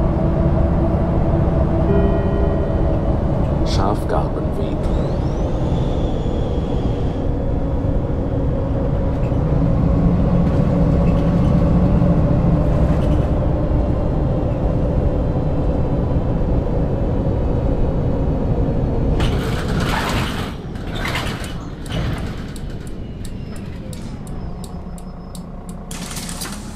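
A bus engine drones steadily as the bus drives along.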